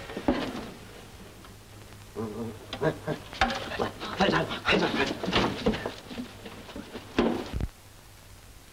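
A man speaks in a low, urgent voice.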